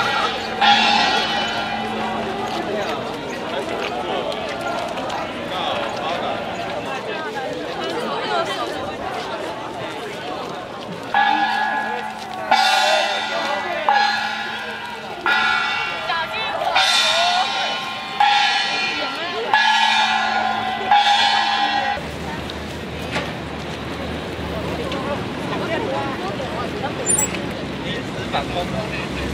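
A large crowd of marching men and women talks and calls out outdoors.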